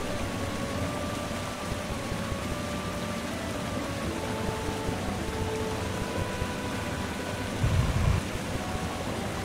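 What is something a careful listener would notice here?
Soft electronic game music plays with steady held notes.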